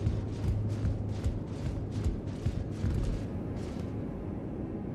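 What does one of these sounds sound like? Armoured footsteps thud on wood.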